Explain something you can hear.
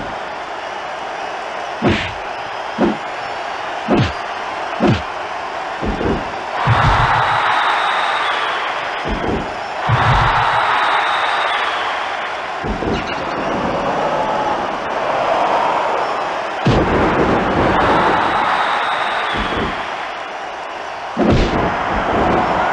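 A crowd cheers and roars throughout.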